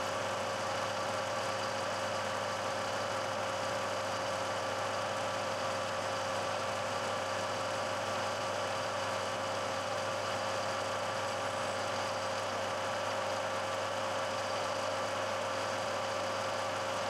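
A milling machine motor whirs steadily.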